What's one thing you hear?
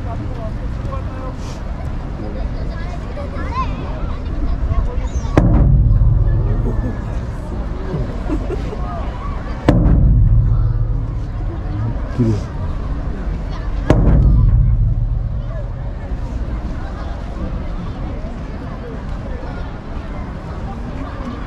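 A crowd murmurs and chatters in the distance.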